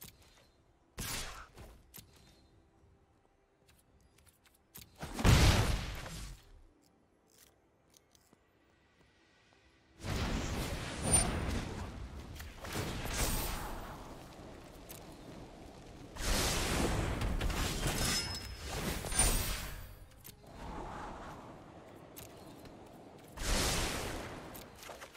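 Magical game sound effects whoosh and flare.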